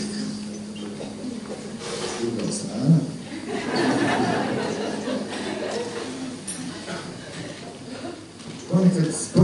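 A man speaks into a microphone with animation, heard through loudspeakers in an echoing hall.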